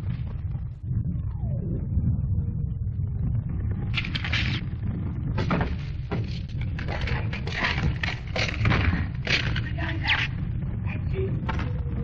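Rifle shots crack in bursts.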